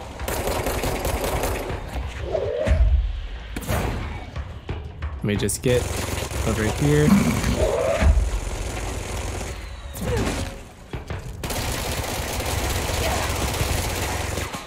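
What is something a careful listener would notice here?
A pistol fires in sharp bursts of shots.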